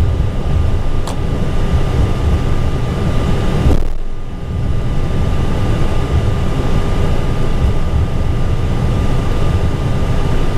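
A steady low rumble of wheels rolls over the taxiway.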